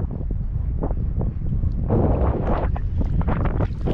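A fish splashes and thrashes in the water.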